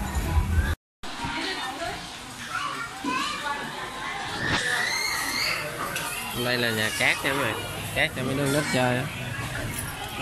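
Young children shout and squeal playfully in an echoing room.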